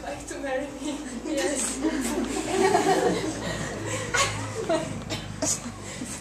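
Young people laugh and chatter in a room.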